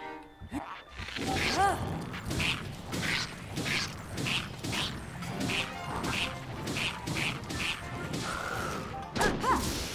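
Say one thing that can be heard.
Blades clash and strike repeatedly in a fast fight.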